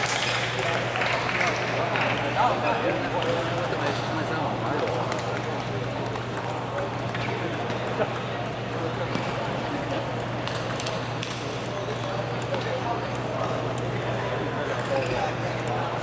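Table tennis balls click against paddles and the table in quick rallies.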